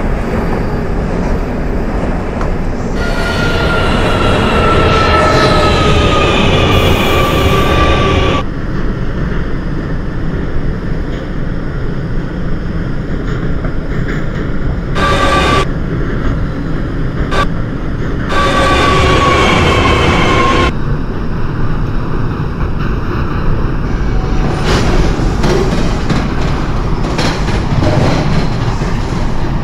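A subway train rumbles steadily through a tunnel.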